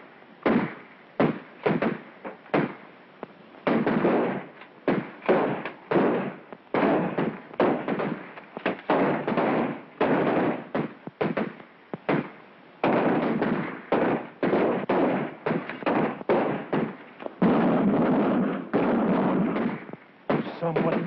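Rifle shots crack rapidly, one after another.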